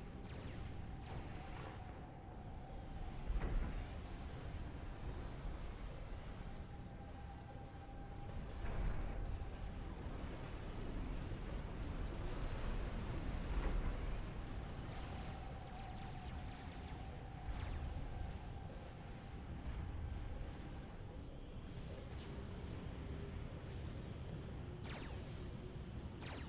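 Game weapons fire and explosions rumble in a battle.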